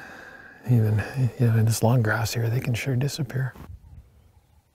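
A man speaks quietly and closely into a microphone.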